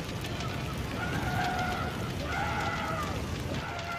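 A fire bursts into flames with a loud roar.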